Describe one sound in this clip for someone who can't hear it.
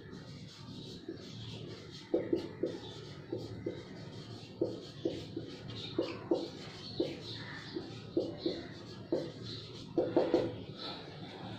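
A marker squeaks and taps against a whiteboard.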